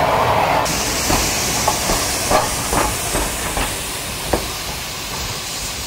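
A steam locomotive's wheels clank slowly on the rails.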